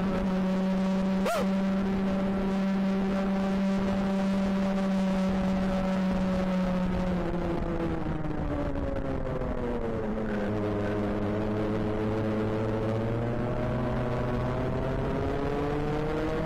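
Other kart engines buzz nearby.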